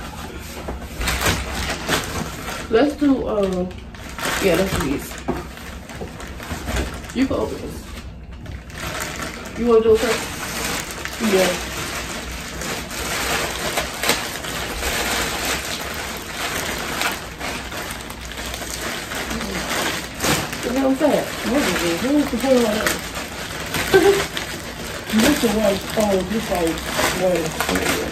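Plastic mailer bags rustle and crinkle as they are handled.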